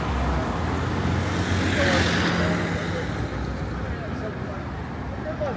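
City traffic rumbles steadily along a busy street outdoors.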